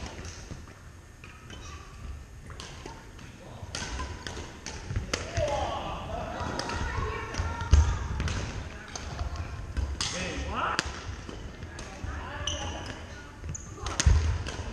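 Paddles hit a plastic ball with sharp pops.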